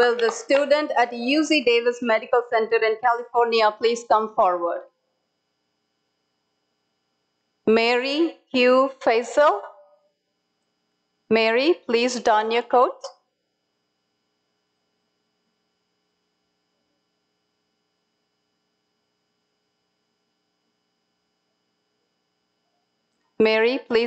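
A young woman speaks calmly through an online call, in short bursts with long pauses.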